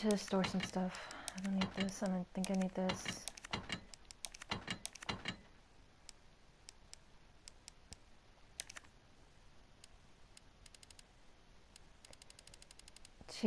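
Short menu clicks tick repeatedly.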